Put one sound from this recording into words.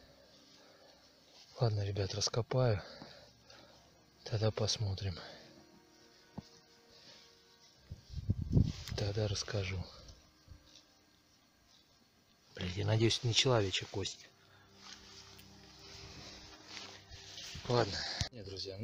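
Fingers scrape and rustle through dry soil and grass close by.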